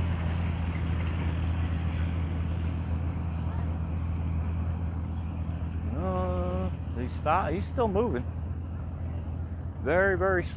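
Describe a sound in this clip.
A tractor engine rumbles steadily as it drives along.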